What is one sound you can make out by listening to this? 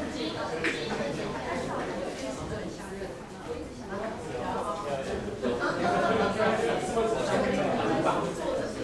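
Adult men and women chatter all together in a crowded room.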